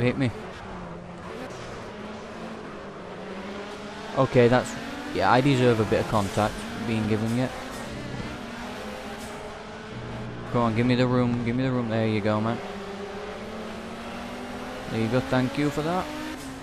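A racing car engine roars and changes pitch as the car shifts gears.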